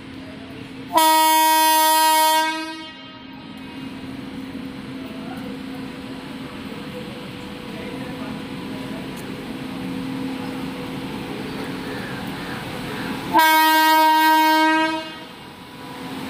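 A train's horn blares loudly twice.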